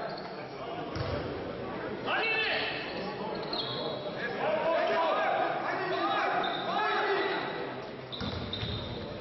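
A basketball bounces on the court with dull thuds.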